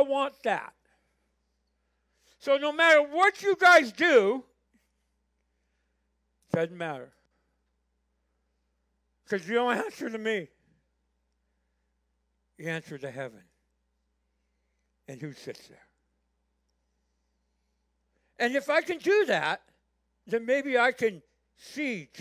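An elderly man preaches with feeling through a microphone in a large room, pausing often.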